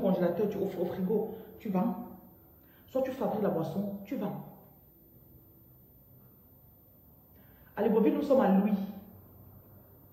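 A woman speaks with animation close to the microphone, in short bursts with pauses.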